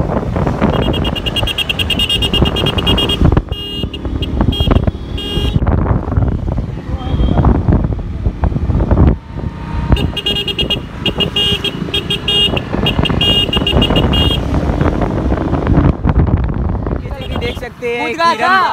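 A motorcycle engine hums as it rides along a road.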